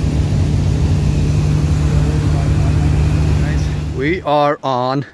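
A small plane's engine drones steadily in flight.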